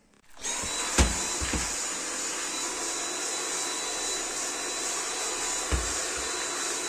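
A vacuum nozzle bumps against a hard floor a few times.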